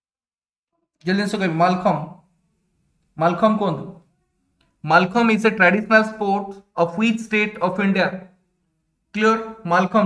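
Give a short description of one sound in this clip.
A young man reads out clearly and calmly into a close microphone.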